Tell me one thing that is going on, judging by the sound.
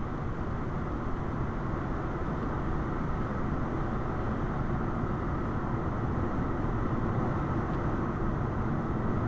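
Tyres hum steadily on the road from inside a moving car.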